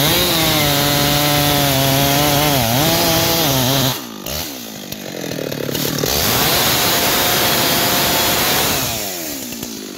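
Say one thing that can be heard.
A chainsaw cuts into a tree trunk.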